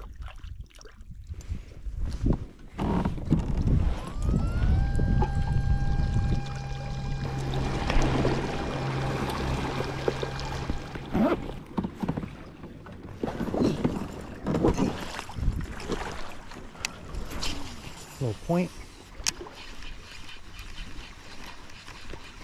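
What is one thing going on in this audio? Water splashes against a small boat's hull.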